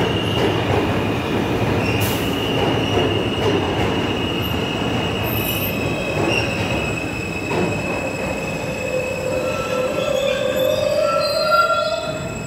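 A subway train approaches and pulls in, its brakes squealing.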